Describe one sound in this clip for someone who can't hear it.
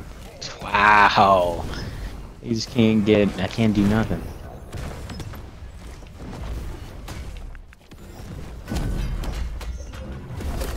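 Game spells blast and crackle in bursts.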